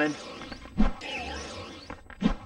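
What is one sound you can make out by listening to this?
A magical spell shimmers and sparkles.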